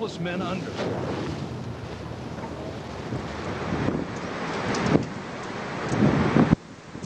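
Strong wind roars outdoors.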